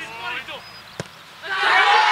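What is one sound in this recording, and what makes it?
A football thuds off a player's kick.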